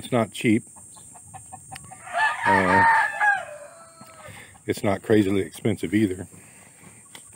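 Chickens cluck and squawk nearby.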